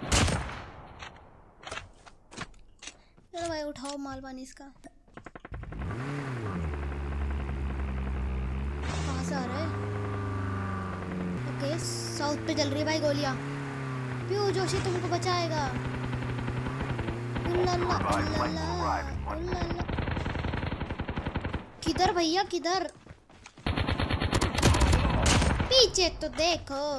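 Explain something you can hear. A boy talks excitedly into a close microphone.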